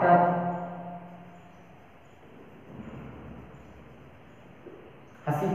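A man speaks calmly, slightly echoing.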